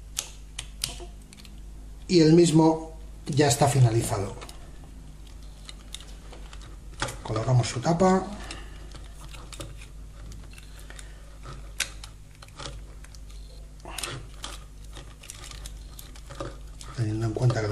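Small plastic parts click and snap as they are fitted together.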